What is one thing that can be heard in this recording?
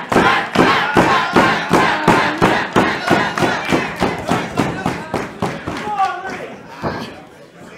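A crowd chants and cheers loudly.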